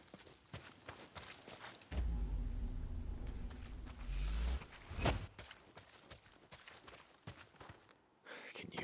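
Footsteps crunch on dry dirt and grass.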